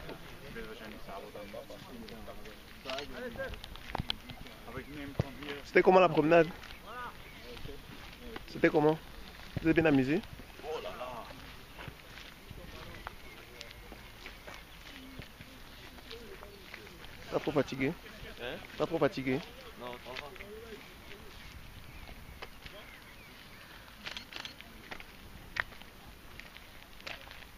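Young men talk and laugh close by, outdoors.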